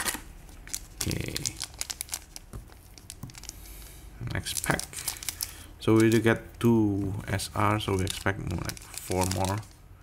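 A foil wrapper crinkles in hands.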